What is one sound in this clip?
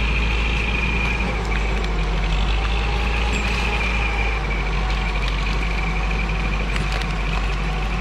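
A tractor engine rumbles steadily in the distance.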